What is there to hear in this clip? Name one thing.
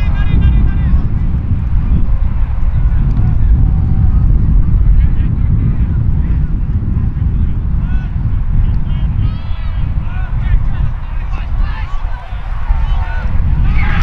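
Wind rumbles steadily across an open field.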